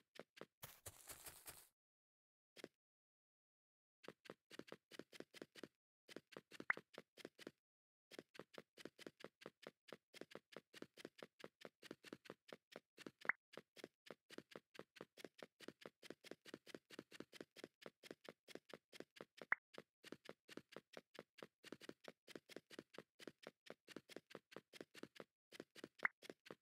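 Quick footsteps patter on stone as a game character runs.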